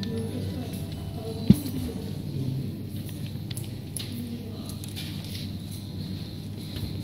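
Paper rustles and crinkles in gloved hands.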